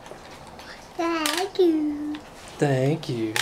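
A toddler babbles and squeals close by.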